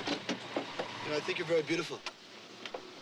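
A man speaks calmly from close by.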